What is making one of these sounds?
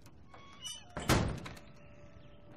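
A heavy metal door slams shut with a loud bang.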